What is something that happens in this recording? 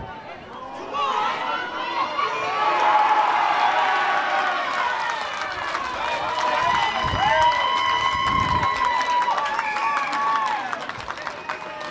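Spectators cheer and shout loudly.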